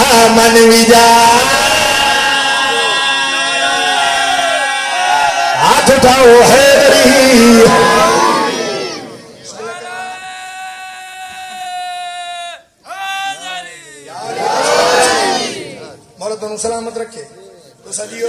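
A man chants loudly and with emotion through a loud microphone.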